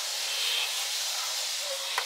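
A spray bottle hisses in short squirts.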